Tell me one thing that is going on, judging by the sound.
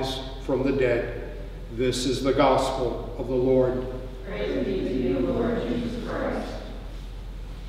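An elderly man reads out aloud in a large echoing hall.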